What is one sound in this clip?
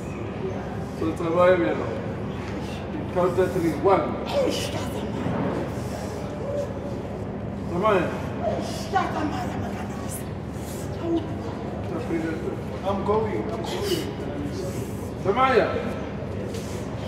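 A woman cries out loudly in short bursts, close by.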